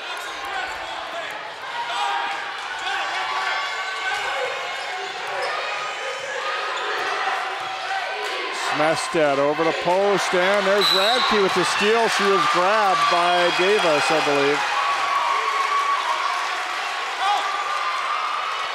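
A large crowd cheers and chatters in an echoing gym.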